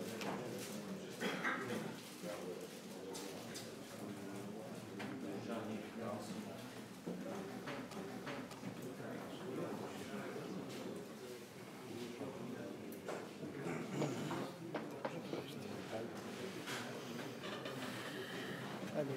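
Several men chat quietly in a room with a slight echo.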